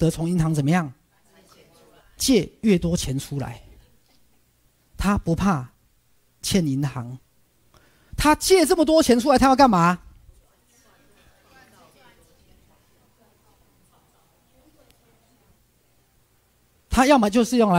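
A middle-aged man speaks with animation through a microphone, in bursts with pauses.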